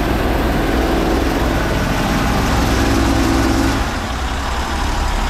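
An engine runs loudly and steadily close by.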